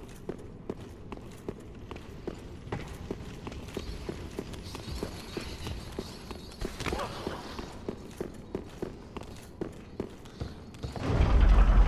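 Armored footsteps clank quickly and evenly on stone.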